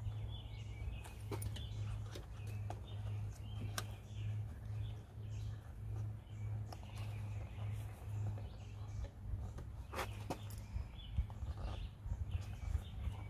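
Metal parts click and clack as fingers work at a latch.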